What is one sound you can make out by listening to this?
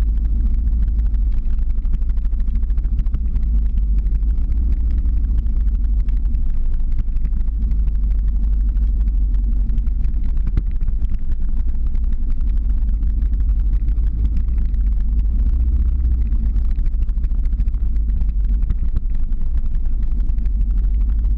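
Wind rushes loudly past, rumbling low and steady.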